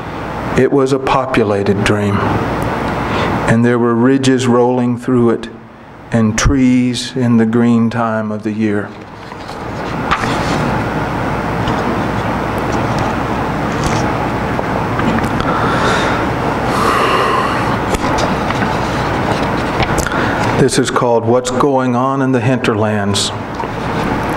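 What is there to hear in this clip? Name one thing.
A middle-aged man reads aloud into a microphone in a calm, measured voice.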